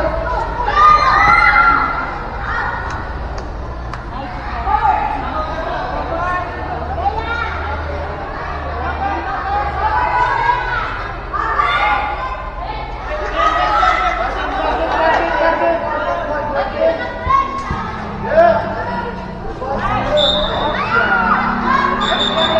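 Young women shout and cheer across a large echoing covered court.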